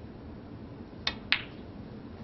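A snooker cue strikes the cue ball with a sharp click.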